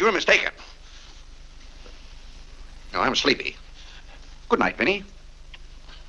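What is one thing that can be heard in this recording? A man speaks softly up close.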